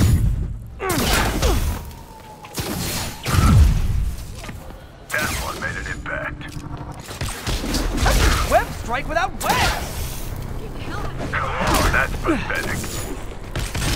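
Energy blasts crackle and boom.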